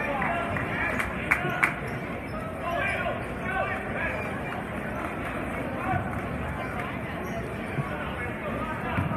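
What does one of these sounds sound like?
A crowd chatters and murmurs in a large echoing gym.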